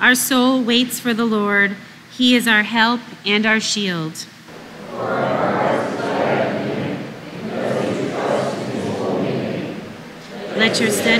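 A woman reads aloud through a microphone in a calm, steady voice.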